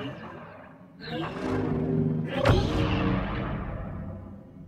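Lightsabers ignite with a sharp whoosh.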